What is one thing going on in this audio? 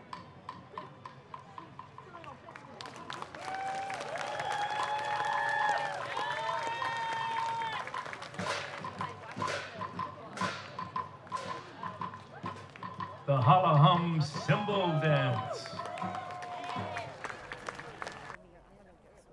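Lively folk music plays through outdoor loudspeakers.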